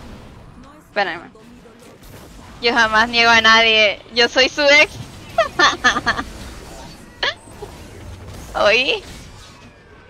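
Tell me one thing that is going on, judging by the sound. A young woman speaks animatedly and in a high voice, close to a microphone.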